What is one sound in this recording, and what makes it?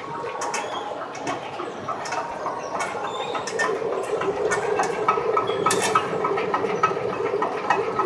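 A fabric machine hums and rattles steadily as cloth rolls through.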